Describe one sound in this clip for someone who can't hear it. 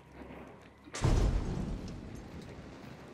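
A rifle fires a single loud shot that echoes and fades.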